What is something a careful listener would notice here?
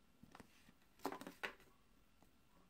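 A cardboard sleeve slides off a case.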